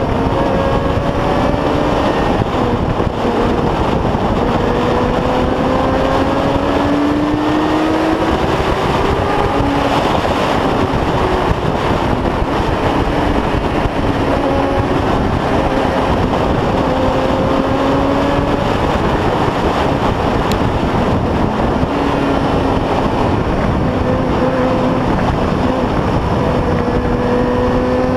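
A motorcycle engine hums, rising and falling in pitch.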